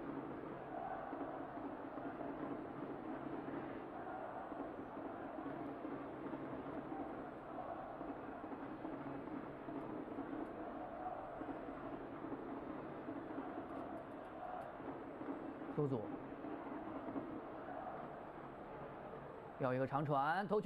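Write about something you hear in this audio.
A large crowd chants rhythmically in an open stadium.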